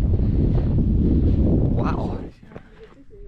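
Wind buffets loudly outdoors, then dies down.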